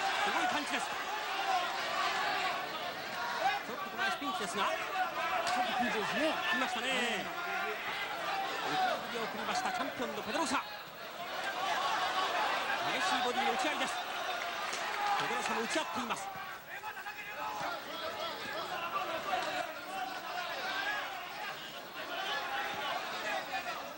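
A large crowd murmurs and shouts throughout.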